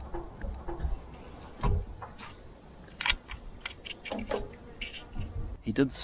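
A gear lever clunks into place.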